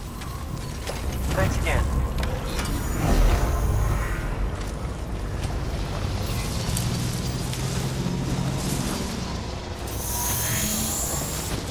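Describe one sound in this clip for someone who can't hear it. A motor trike's engine hums as it drives over rough ground.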